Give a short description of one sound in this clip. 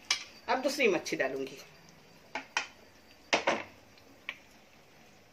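A metal utensil clinks against a ceramic plate.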